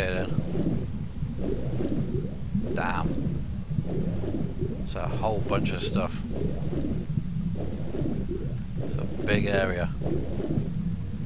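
Muffled water rumbles and churns steadily underwater.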